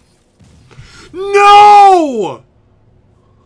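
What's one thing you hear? A loud explosion booms with a falling whoosh.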